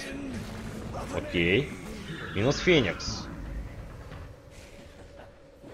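Magic spells whoosh and crackle in a fantasy battle.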